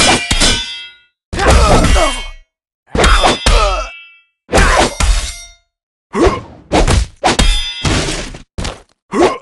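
Metal blades clash and swoosh in quick bursts.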